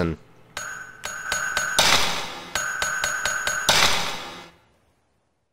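Short electronic menu chimes ring out in quick succession.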